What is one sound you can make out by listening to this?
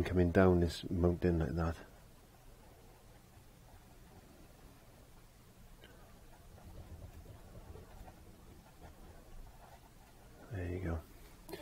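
A paintbrush strokes softly across canvas.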